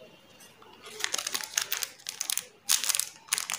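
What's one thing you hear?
A plastic candy wrapper crinkles loudly as hands handle it.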